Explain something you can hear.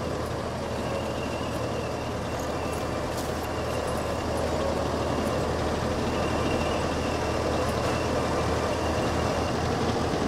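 Footsteps crunch softly on damp ground and wooden stairs.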